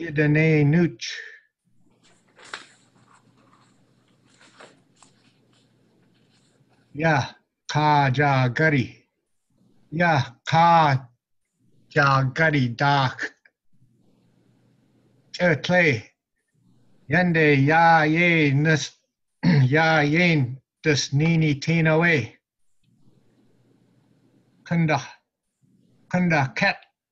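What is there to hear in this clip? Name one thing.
A man reads aloud slowly in short phrases over an online call.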